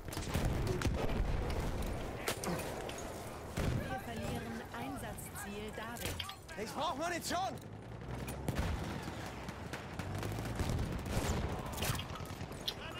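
Gunshots crack repeatedly, near and far.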